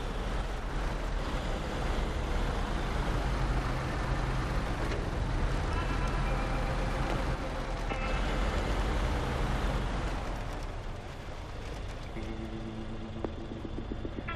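Water splashes and churns around a truck driving through a flooded river.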